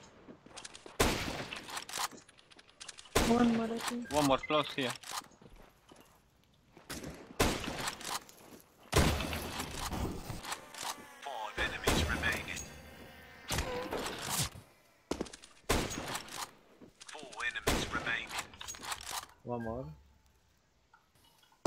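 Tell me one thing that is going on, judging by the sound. A sniper rifle fires loud single shots, one at a time.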